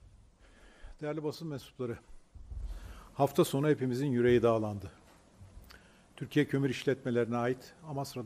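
An elderly man speaks firmly into a microphone, with pauses between phrases.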